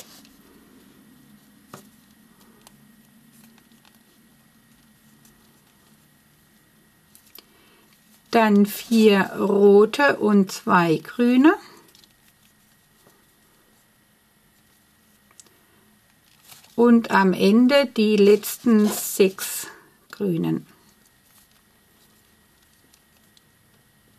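Rubber bands rub and creak softly against a crochet hook.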